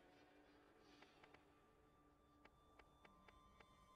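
Menu selection clicks tick quickly, one after another.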